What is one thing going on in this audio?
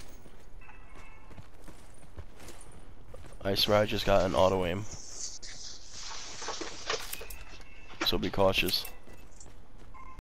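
Footsteps crunch steadily on a dirt path.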